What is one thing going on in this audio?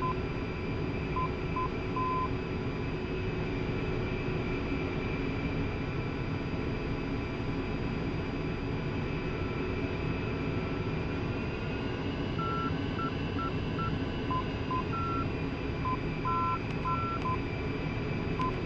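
A jet engine hums and whines steadily.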